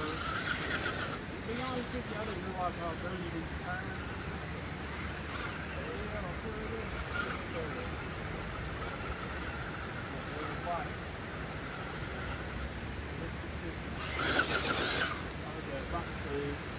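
Rubber tyres scrape and grip on rock.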